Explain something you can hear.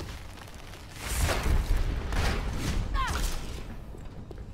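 Game gunshots fire in quick bursts.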